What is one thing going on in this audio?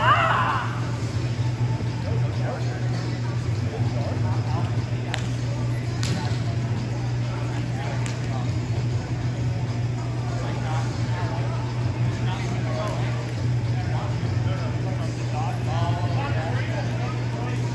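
A steady low hum of ventilation fills a large hall.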